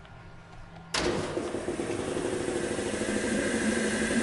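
A machine starts up with a loud, steady roar.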